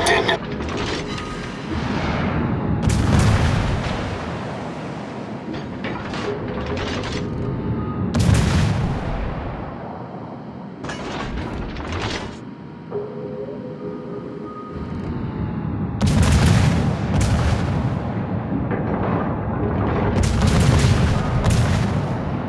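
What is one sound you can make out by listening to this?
Naval guns fire in booming salvos.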